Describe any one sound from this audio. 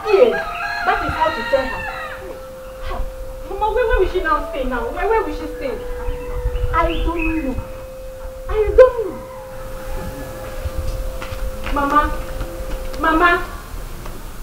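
A woman shouts angrily nearby.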